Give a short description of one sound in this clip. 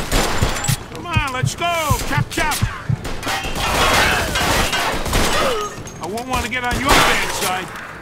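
Gunshots fire in rapid bursts, echoing in a large hall.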